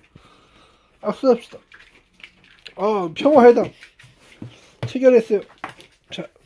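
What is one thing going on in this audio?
A small dog whines and yelps up close.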